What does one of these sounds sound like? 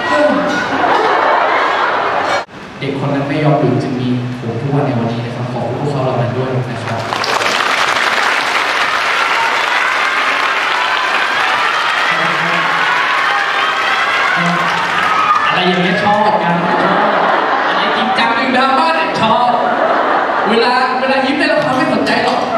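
A young man speaks with animation into a microphone, heard through loudspeakers in a large echoing hall.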